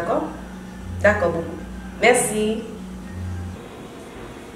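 A young woman talks cheerfully on a phone up close.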